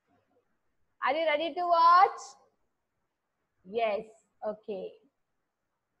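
A woman speaks calmly into a microphone, as if on an online call.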